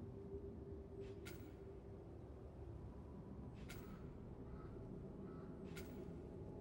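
A game menu makes short soft clicks as the selection moves.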